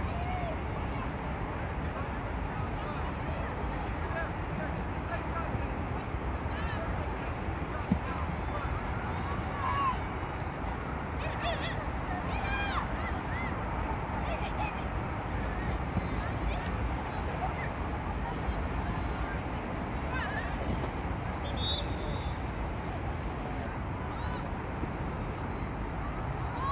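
Young women shout and call out across an open field, some distance away.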